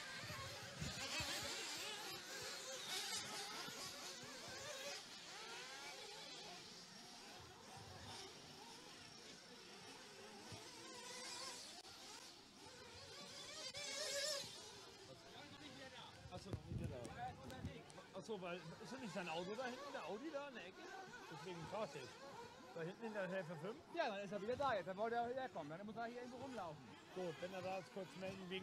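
Small electric model cars whine as they race on a dirt track outdoors.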